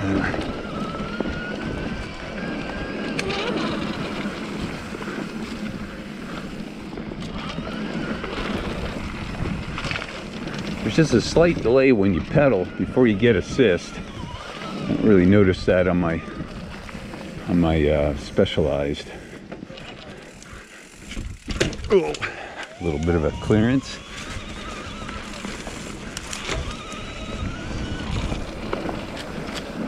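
A bicycle rattles over bumps in the trail.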